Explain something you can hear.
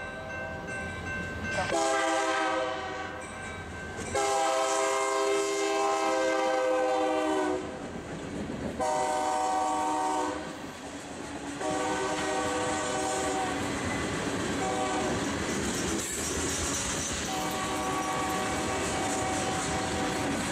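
A freight train's wheels rumble and clatter over the rails.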